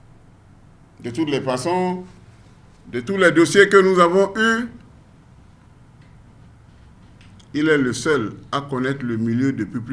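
A man speaks calmly into close microphones, with pauses between phrases.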